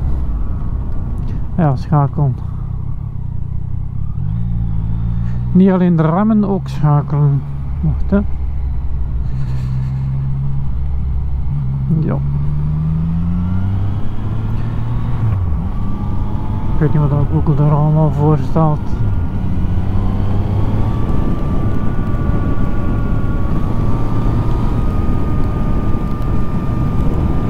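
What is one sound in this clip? A motorcycle engine hums and revs up and down as it rides.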